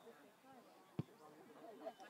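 A foot kicks a ball with a dull thump.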